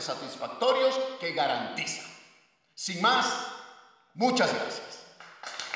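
A man speaks with animation through a microphone in an echoing room.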